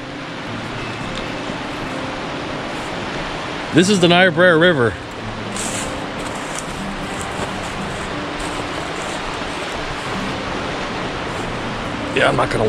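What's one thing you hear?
A river rushes and splashes steadily over shallow rapids nearby.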